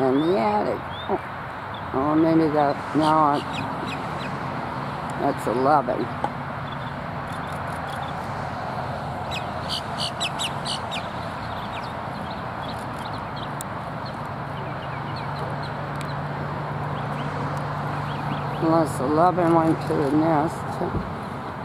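Young bald eagles call in bursts of whining cries.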